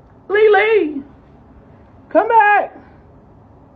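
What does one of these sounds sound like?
A young man speaks loudly and with animation close to a microphone.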